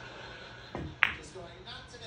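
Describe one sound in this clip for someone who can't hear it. A cue stick strikes a pool ball with a sharp click.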